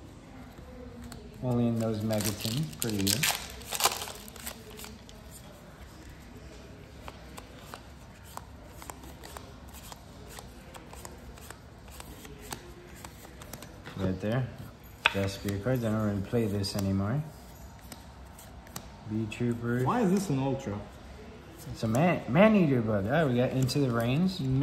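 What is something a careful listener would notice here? Trading cards rustle and slide against each other as they are sorted.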